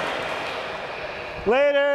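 A young man cheers loudly nearby.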